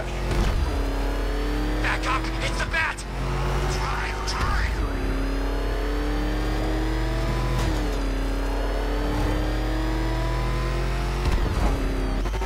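A powerful car engine roars steadily, rising and falling in pitch as the car speeds along.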